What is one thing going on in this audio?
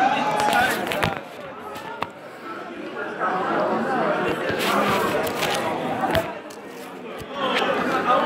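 Heavy thuds of bodies slam onto a wrestling mat.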